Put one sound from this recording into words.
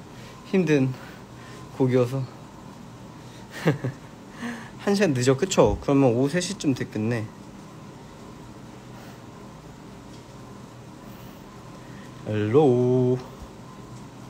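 A young man talks casually and close by.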